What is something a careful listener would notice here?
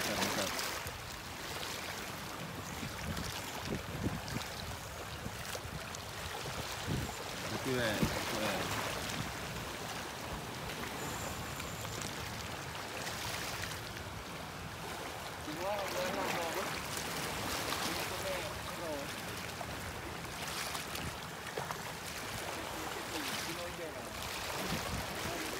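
Small waves lap and splash against rocks outdoors.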